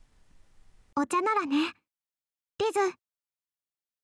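A girl speaks in a high, sweet voice, close to the microphone.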